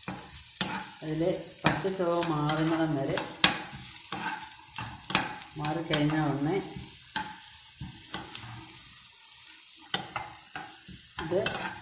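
A spatula scrapes and knocks against a frying pan.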